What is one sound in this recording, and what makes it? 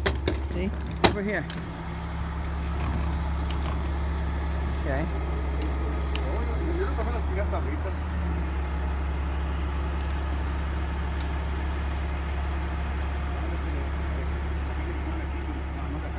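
A truck engine idles with a steady low drone.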